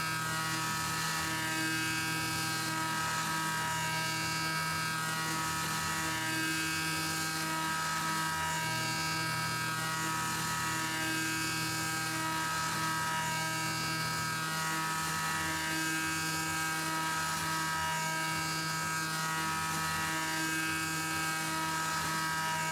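A milling cutter grinds and screeches against metal.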